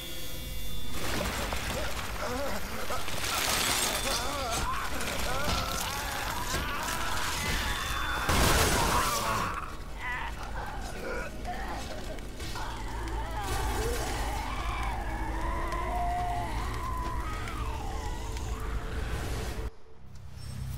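A monstrous creature shrieks and wails.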